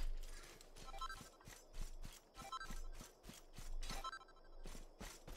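A bright chime rings out as an item is picked up.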